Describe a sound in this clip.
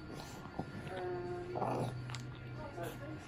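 A baby coos and babbles softly.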